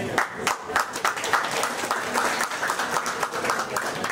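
Hands clap in applause.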